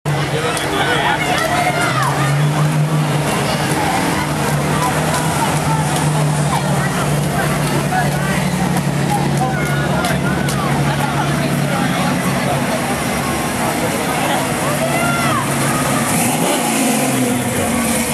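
A crowd chatters along the street.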